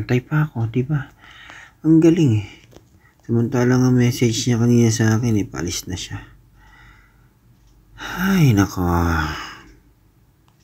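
A man speaks close by, with animation.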